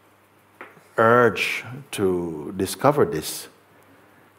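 An elderly man speaks calmly and expressively close to a microphone.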